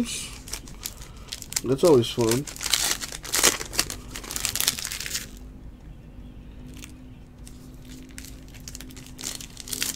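Plastic wrapping crinkles and tears close by.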